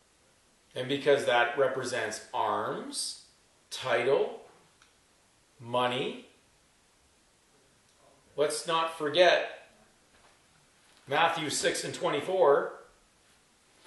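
An elderly man speaks calmly and slowly, pausing between phrases.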